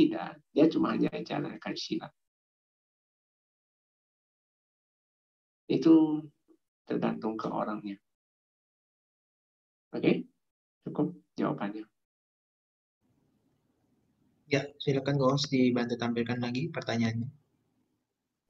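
A man speaks calmly into a microphone, heard through an online call, with pauses.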